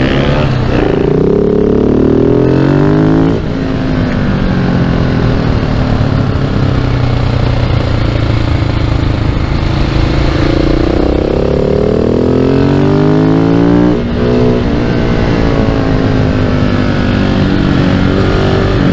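Wind buffets the rider's helmet at speed.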